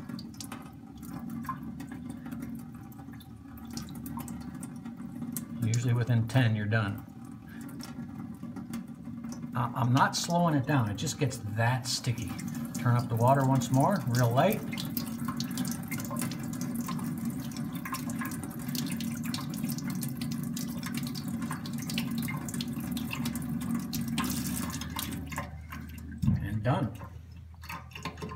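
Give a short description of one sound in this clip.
Water runs steadily from a tap into a metal sink.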